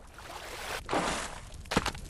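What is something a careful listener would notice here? Water splashes as a goat wades out.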